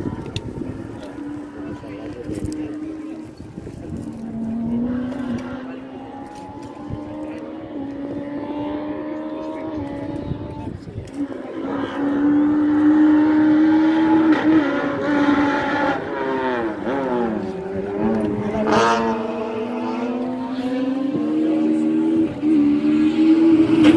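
A racing car engine revs and roars through gear changes, echoing across a valley.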